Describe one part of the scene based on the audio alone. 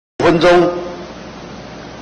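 A man speaks briefly and formally through a microphone.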